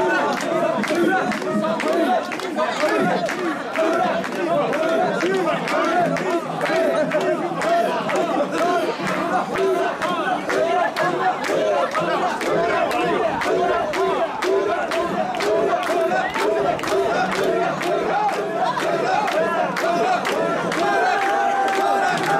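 A large crowd of men chants loudly in rhythm close by.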